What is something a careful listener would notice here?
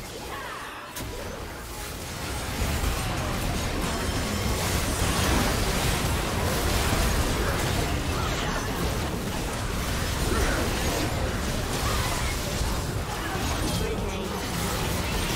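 Magic blasts and clashing hits burst in quick succession in a frantic battle.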